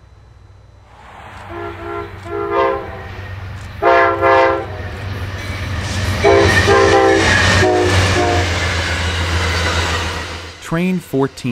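A diesel locomotive engine roars as it passes close by.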